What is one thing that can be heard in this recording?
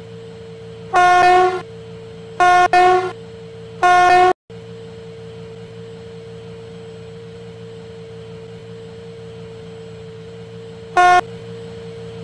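A train horn sounds in several loud blasts.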